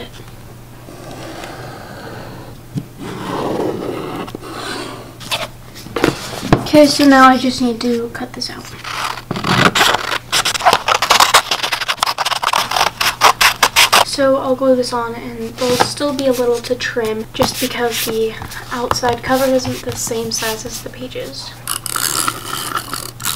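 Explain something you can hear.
Stiff paper rustles and taps as it is handled.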